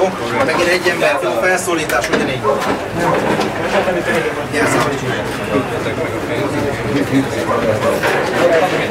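A crowd of men and women talk over one another, agitated and close by.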